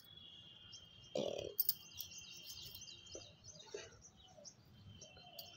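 Glass bangles clink against each other.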